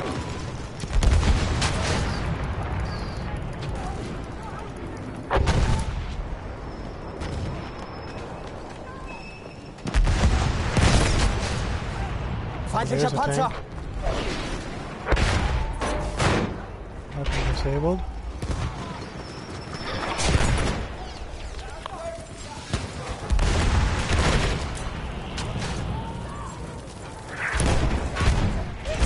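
Loud explosions boom again and again.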